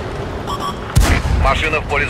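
A tank gun fires with a loud boom.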